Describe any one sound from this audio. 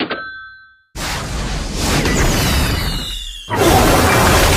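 A missile roars past with a rushing whoosh.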